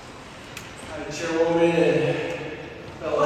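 Another man speaks through a microphone in a large echoing hall.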